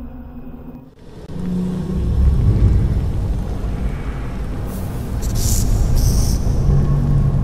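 A torch flame crackles and flickers.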